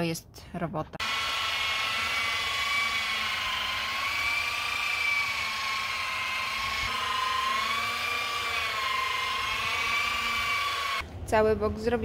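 A power polisher whirs steadily with a high whine.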